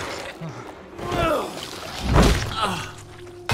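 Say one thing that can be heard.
A monster shrieks and snarls.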